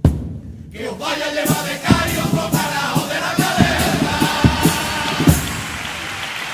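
A choir of men sings together loudly.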